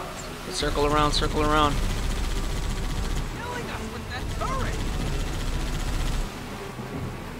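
A vehicle engine rumbles as it drives through shallow water.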